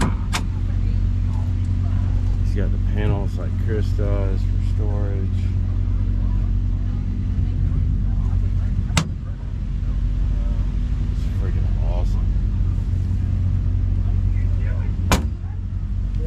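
A metal door latch clicks sharply a few times.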